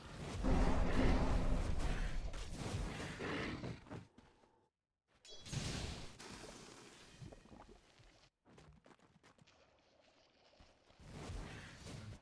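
Weapons clash and thud in quick blows.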